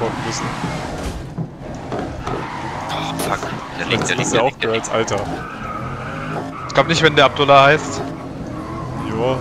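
A racing car engine roars and revs as the car drives.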